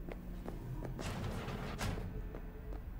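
A door slides open.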